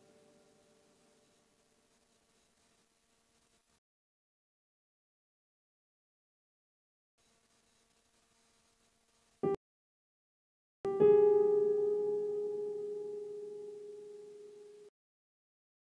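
Piano notes play on an electronic keyboard, with a chord ringing out and slowly fading.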